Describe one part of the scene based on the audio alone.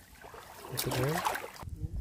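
Water splashes as a net is dipped in a river.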